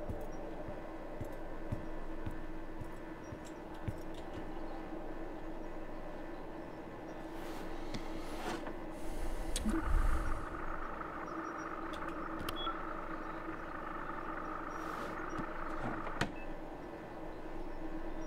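Computer fans hum steadily.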